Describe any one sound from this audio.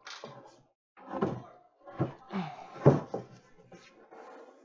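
Wooden boards knock and clatter against each other.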